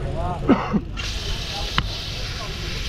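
Bicycle tyres hiss on a wet road.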